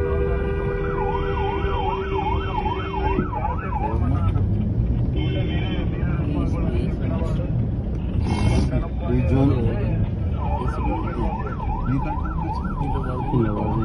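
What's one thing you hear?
A police siren wails close by in rising and falling bursts.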